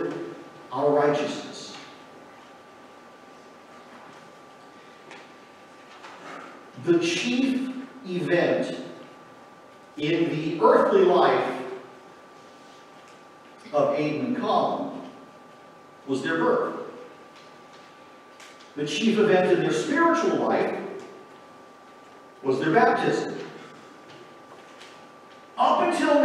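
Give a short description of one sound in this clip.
A man speaks calmly through a microphone in a large echoing hall, with pauses between phrases.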